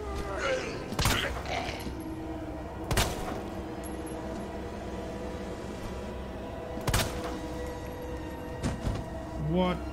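A pistol fires several loud shots in a small room.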